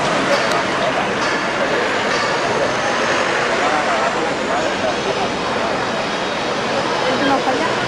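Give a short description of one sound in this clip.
A car engine idles and rolls slowly past close by.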